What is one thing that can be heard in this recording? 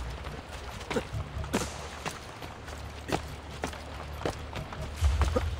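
Footsteps run quickly on stone.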